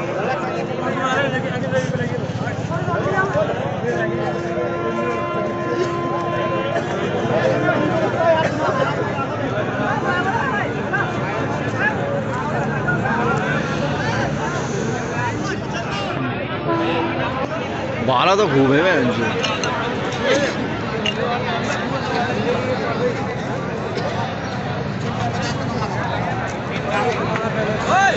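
A large crowd of young men chatter and call out all around, outdoors.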